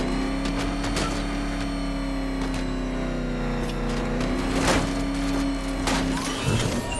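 Sharp clanks and thuds ring out.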